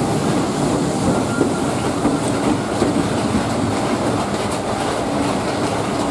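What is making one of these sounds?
A diesel locomotive engine drones heavily as it passes.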